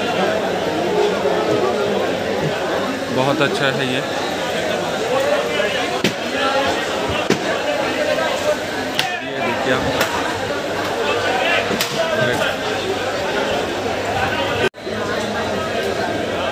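A crowd of people chatters nearby in a busy, echoing space.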